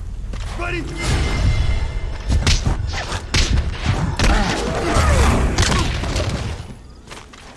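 A man grunts and struggles in a scuffle at close range.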